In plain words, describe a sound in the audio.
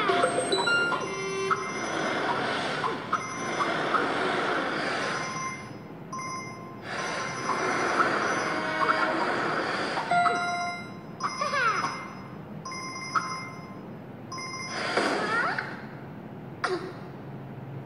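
Game music and sound effects play from a phone's speaker.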